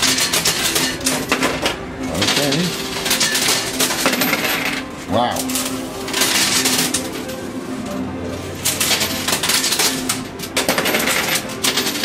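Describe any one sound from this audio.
Dropped coins clatter onto a pile of coins.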